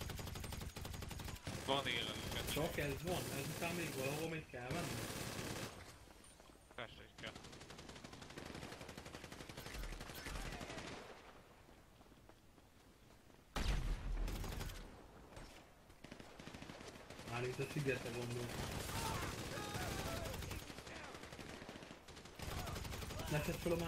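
Rapid gunfire cracks in bursts.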